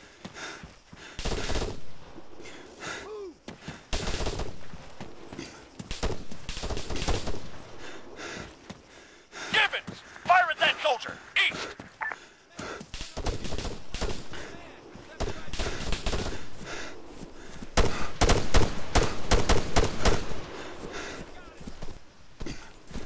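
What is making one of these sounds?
Rifles fire in rapid bursts of sharp cracks, some close and some farther off.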